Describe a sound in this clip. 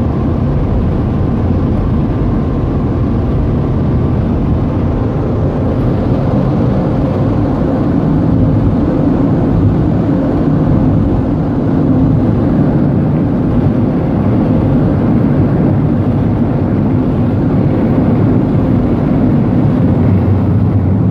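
Electric blower fans roar steadily with a low hum.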